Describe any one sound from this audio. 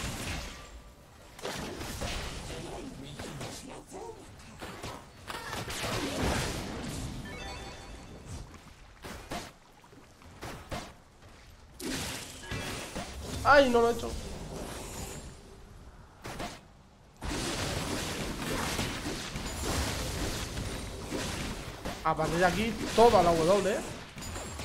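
Video game combat effects whoosh and clash.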